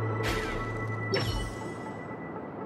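A magical whoosh shimmers and fades.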